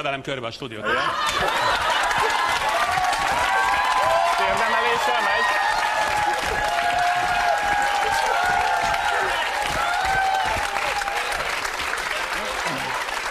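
A large audience applauds and cheers.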